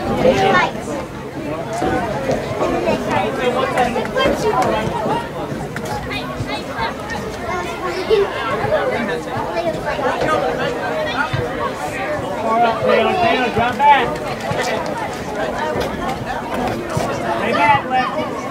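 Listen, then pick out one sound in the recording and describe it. A crowd of spectators shouts and cheers outdoors from close by.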